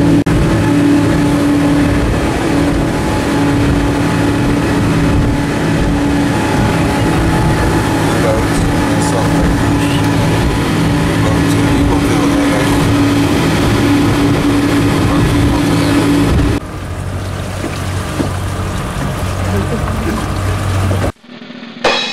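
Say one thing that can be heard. A ferry's engine drones.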